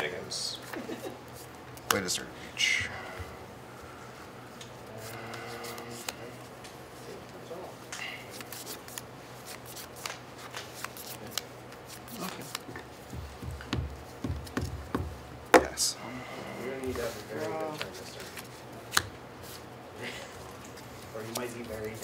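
Playing cards are shuffled and riffled by hand.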